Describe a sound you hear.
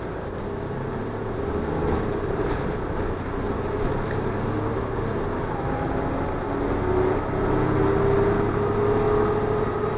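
A bus engine rumbles steadily while driving along.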